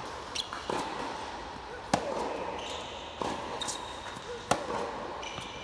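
Tennis balls are struck back and forth with sharp pops that ring through a large echoing hall.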